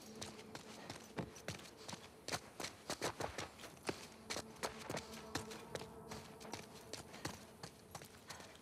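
Footsteps thud and patter quickly across a hard floor and down stairs.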